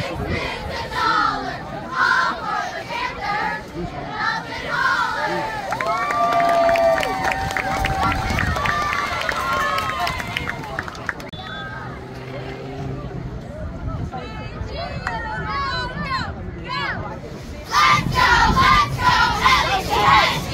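A group of young girls chant a cheer in unison, shouting outdoors.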